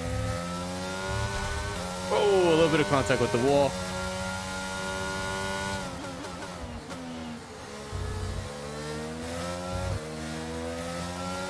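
A racing car engine whines at high revs, rising and falling as gears change.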